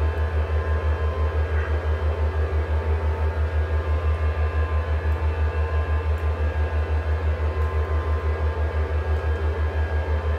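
A low aircraft engine drone throbs steadily.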